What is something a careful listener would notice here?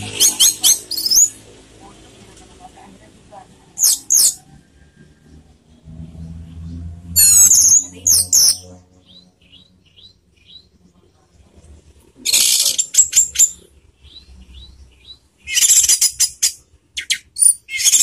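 A caged songbird sings loud, shrill bursts of chirps and trills close by.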